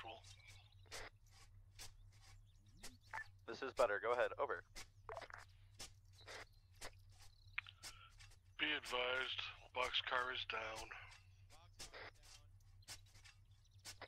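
A shovel digs repeatedly into soil.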